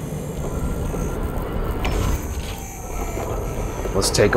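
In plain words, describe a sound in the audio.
A heavy stone wall rumbles as it slides open.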